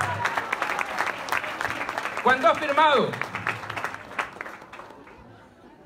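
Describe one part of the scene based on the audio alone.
A crowd claps and chatters.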